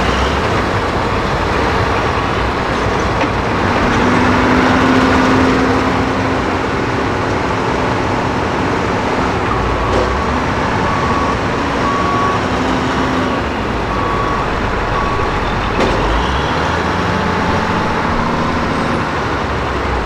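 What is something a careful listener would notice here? A wheel loader's diesel engine roars and revs close by.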